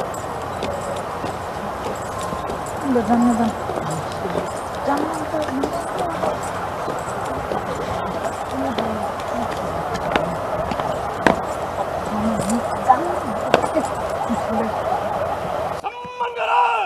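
Boots stamp on the ground in a marching step.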